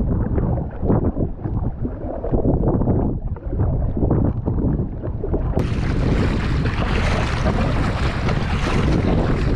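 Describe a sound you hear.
A paddle splashes through water.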